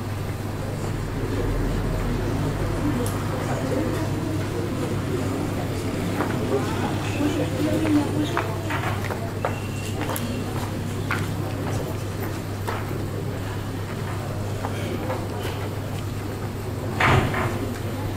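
A crowd murmurs quietly in a large room.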